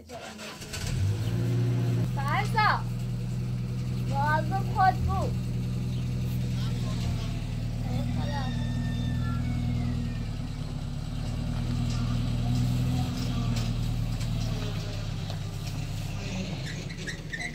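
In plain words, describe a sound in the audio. A pickup truck's engine idles with a low steady rumble.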